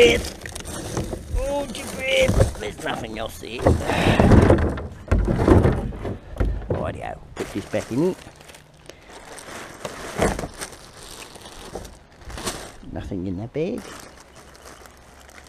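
Plastic bottles clatter and rattle together.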